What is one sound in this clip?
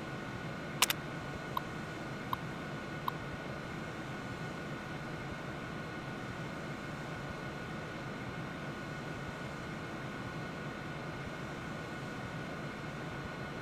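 A computer terminal hums steadily.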